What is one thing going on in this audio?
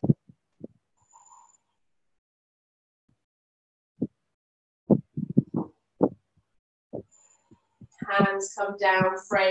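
A woman speaks calmly through a microphone, as on an online call, in short broken bursts.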